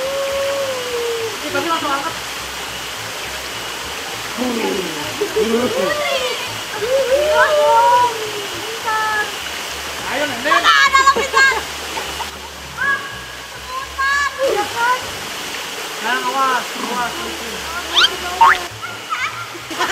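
Young people shout and talk excitedly outdoors.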